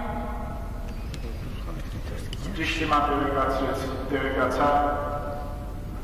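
A middle-aged man chants slowly through a microphone, his voice echoing.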